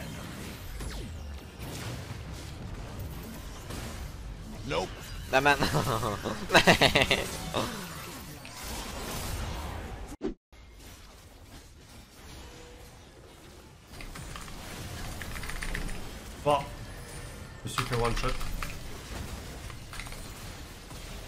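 Game sound effects of spells and hits play.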